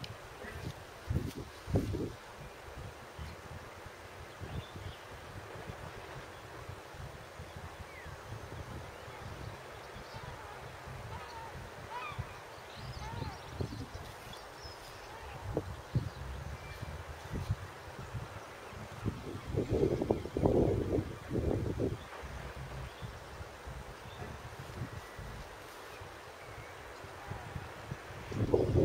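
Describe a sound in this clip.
Wind buffets and rumbles outdoors in gusts.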